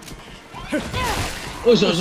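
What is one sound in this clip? Blows land with dull thuds in a close fight.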